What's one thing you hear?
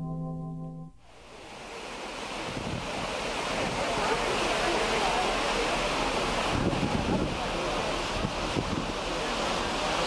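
Foamy water churns and rushes loudly in a ship's wake.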